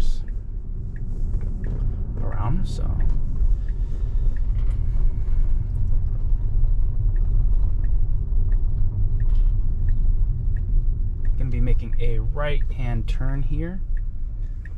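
A car drives along a road with a steady low rumble of tyres and engine, heard from inside.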